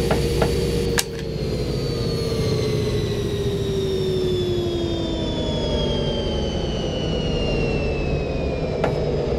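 A locomotive engine hum drops in pitch as the train slows.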